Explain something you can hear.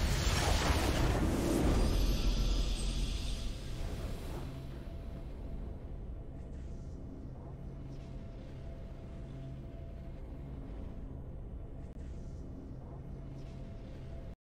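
A soft game victory tune plays.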